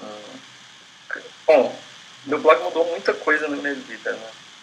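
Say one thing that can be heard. A young man speaks casually over an online call.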